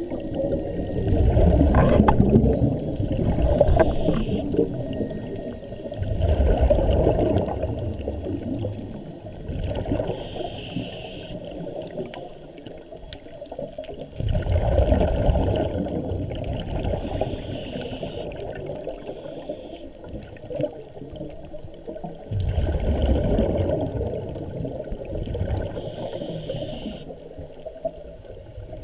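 Water rushes and surges in low, muffled swells, heard from underwater.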